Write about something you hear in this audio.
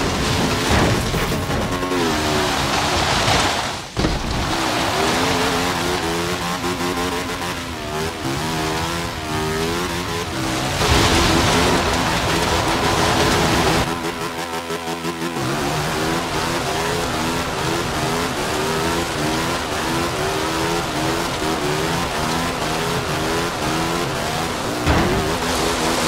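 A small car engine revs hard, rising and falling in pitch.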